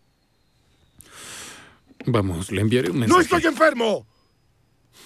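A young man speaks with feeling, close by.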